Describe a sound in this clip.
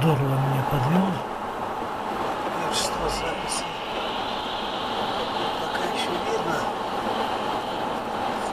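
Tyres hiss steadily on a wet road as a car drives along.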